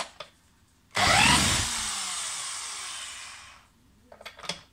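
An electric drill whirs briefly, then winds down.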